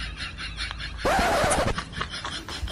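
A gas lighter hisses briefly as it is lit.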